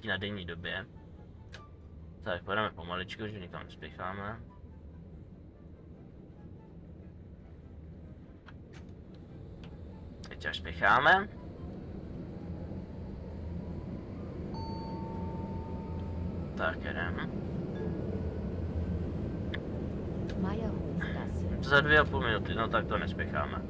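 A tram rumbles along rails.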